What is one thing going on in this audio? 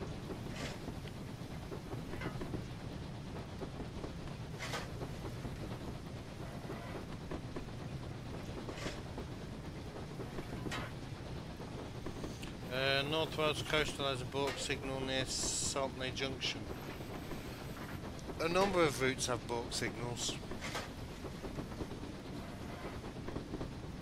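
A steam locomotive chugs steadily along the rails.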